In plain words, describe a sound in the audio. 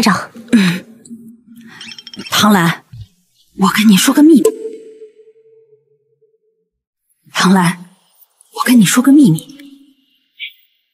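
A woman speaks close by in short, tense phrases.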